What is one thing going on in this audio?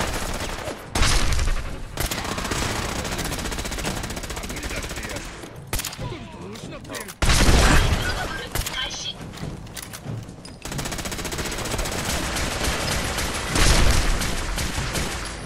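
A rifle fires with loud, booming shots.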